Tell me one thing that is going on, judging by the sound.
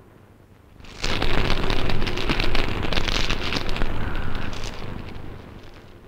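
A fire crackles in a fireplace.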